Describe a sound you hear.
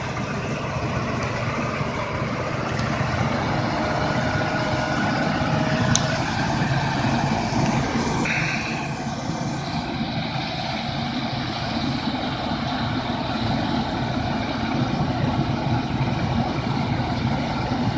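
A heavy truck engine roars and strains loudly.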